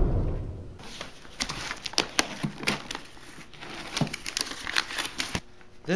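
A plastic folder rustles and clatters as it is handled close by.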